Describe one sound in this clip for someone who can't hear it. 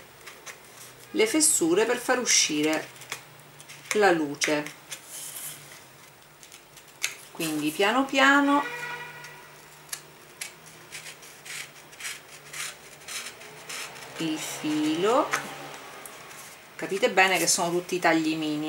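A craft knife scrapes and scratches through paper.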